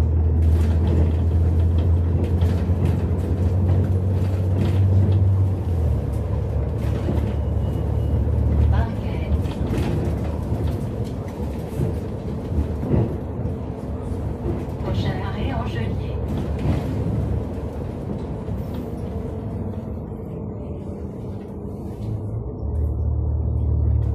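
A bus engine hums low and steady while the bus drives along.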